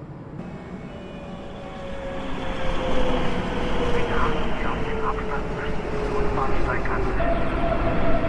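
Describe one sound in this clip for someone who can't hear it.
Train brakes squeal with a slowly falling pitch.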